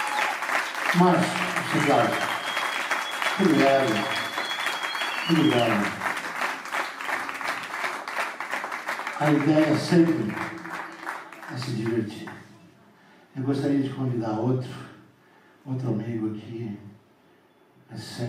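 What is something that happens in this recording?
An older man sings into a microphone.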